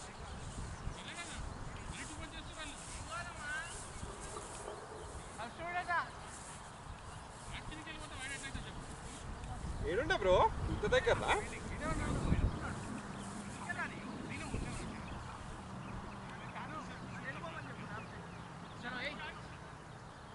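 Men call out to each other outdoors, some distance away.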